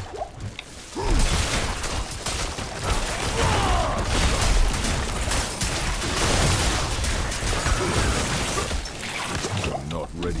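Blasts boom and crackle loudly.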